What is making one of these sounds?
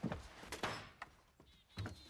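An axe chops into a wooden door.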